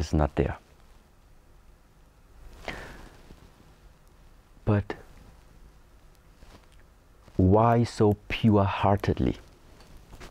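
A man speaks calmly and slowly, close by, with long pauses.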